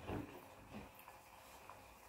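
A metal lid clinks onto a cooking pot.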